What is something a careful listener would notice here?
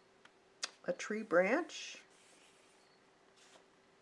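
Paper rustles softly under a hand.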